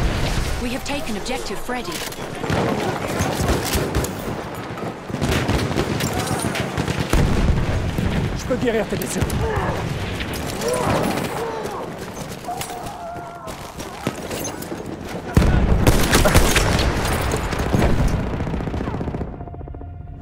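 Gunfire cracks and pops repeatedly.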